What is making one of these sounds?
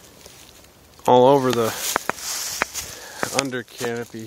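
Dry leaves rustle and crunch underfoot.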